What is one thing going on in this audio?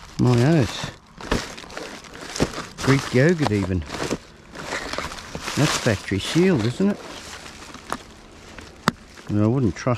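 A plastic tub knocks against other rubbish.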